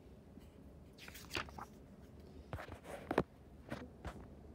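Paper pages of a book rustle and crinkle as they are handled.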